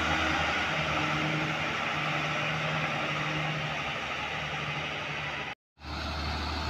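A bus engine rumbles in the distance as it approaches.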